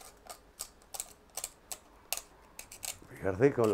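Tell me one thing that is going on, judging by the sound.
Pruning shears snip with sharp clicks.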